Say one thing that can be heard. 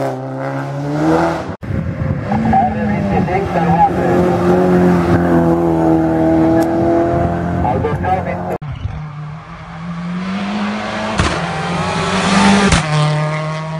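A rally car engine roars loudly at high revs as the car speeds past.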